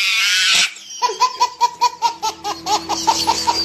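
A baby laughs loudly in repeated bursts of giggles.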